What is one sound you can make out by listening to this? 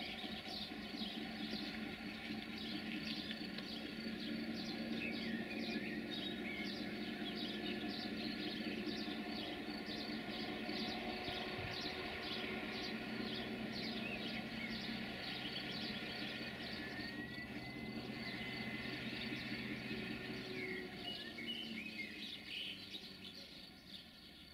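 An electric locomotive rumbles and hums as it slowly approaches along the tracks.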